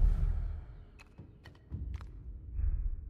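Light clicks and scrapes sound as someone grabs onto a ledge.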